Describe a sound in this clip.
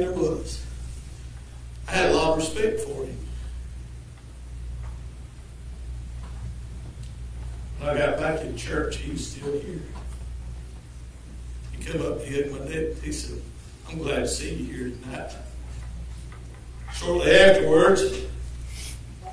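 An elderly man speaks through a microphone in short phrases, with pauses, in an echoing room.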